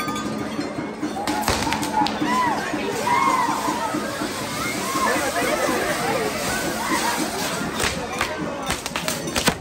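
A crowd of people shouts and cheers excitedly.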